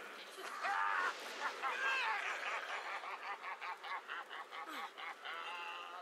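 Fiery bursts crackle and pop.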